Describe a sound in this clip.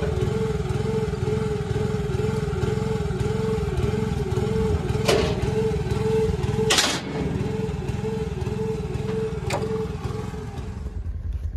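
A small engine hums steadily nearby.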